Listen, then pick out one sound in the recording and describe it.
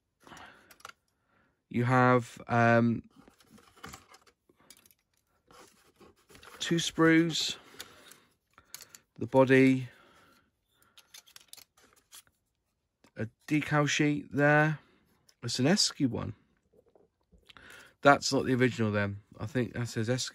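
Plastic model parts click and rattle as hands handle them.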